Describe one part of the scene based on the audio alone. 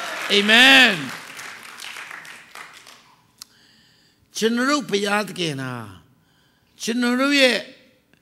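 A middle-aged man preaches with animation into a microphone, his voice echoing in a large hall.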